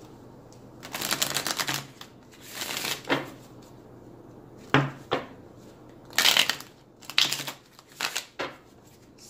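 Cards are shuffled with a soft rapid riffling.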